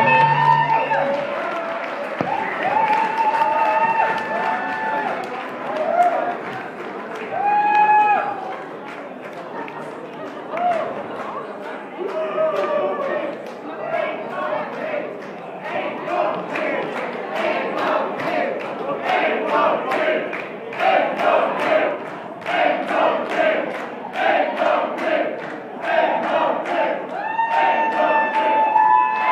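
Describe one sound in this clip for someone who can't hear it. A keyboard plays a loud wavering melody.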